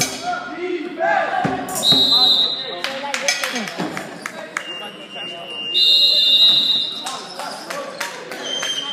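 Spectators call out and cheer in a large echoing gym.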